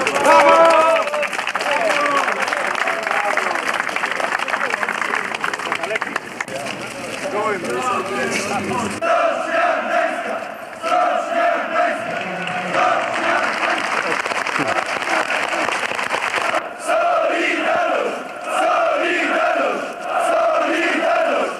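A large crowd of men chants and sings loudly outdoors.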